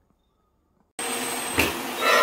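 A vacuum cleaner roars loudly nearby.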